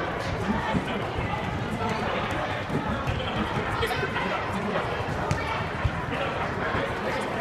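Sneakers squeak and thud on a hard floor.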